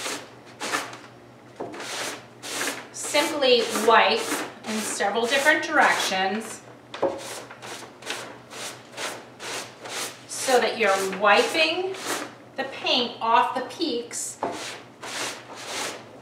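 A sponge dabs and scrapes rhythmically on paper.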